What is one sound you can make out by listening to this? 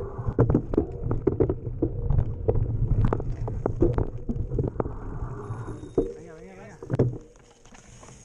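Bike tyres rattle and clatter over rough rocky ground.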